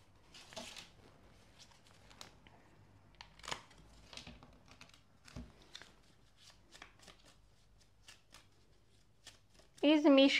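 Paper rustles and cards shuffle in hands.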